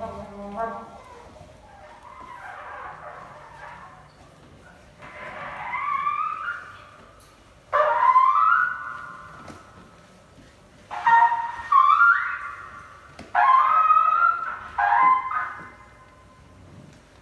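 A man plays a keyboard softly.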